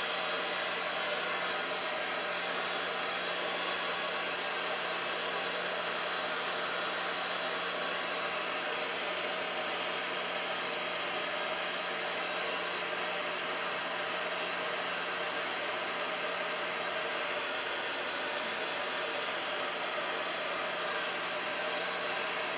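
A hair dryer blows with a steady, loud whirring roar close by.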